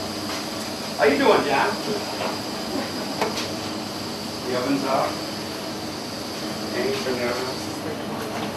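A woman speaks briefly in a room.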